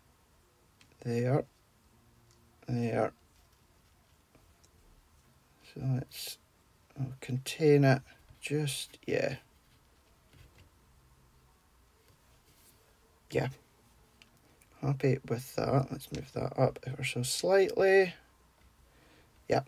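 Hands softly press and slide a paper card on a mat.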